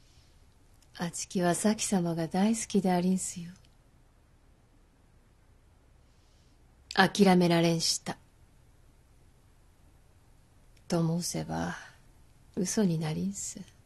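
A woman speaks calmly and gently.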